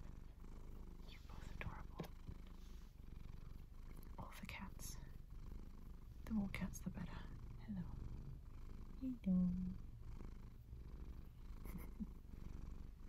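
Clothing rustles softly close by.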